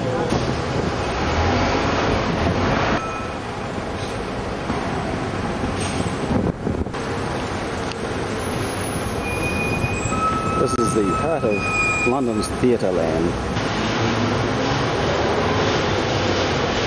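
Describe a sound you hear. A bus engine hums as it drives along a street.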